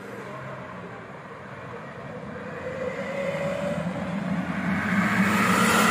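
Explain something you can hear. A heavy truck's engine rumbles as the truck drives closer and grows louder.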